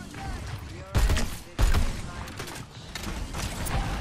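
A video game gun fires a few loud shots.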